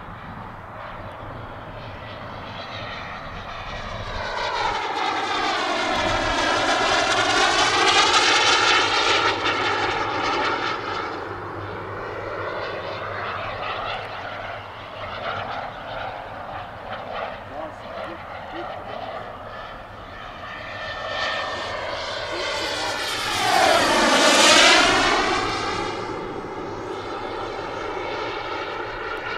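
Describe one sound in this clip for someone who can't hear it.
A jet engine roars overhead, swelling loudly twice as a fighter jet passes and then fading.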